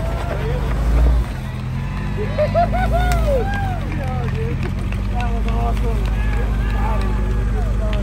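Men talk nearby with animation.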